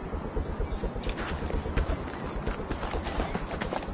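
A rifle clatters as it is lowered from the shoulder.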